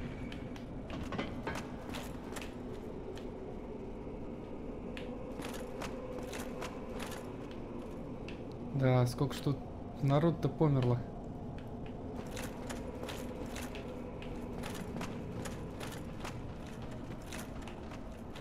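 Armoured footsteps clank on stone at a steady walking pace.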